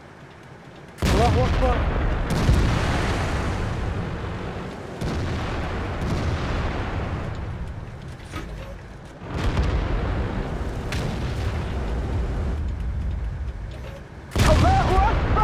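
Tank cannons fire with heavy booming blasts that echo away.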